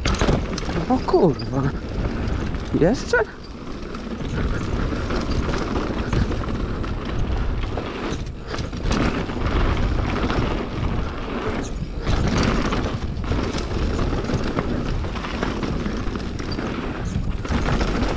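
Wind buffets loudly past a rushing rider.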